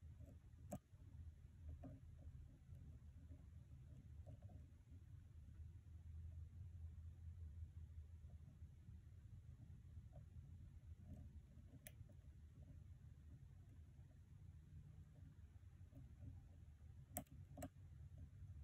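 Metal picks click and scrape faintly inside a lock.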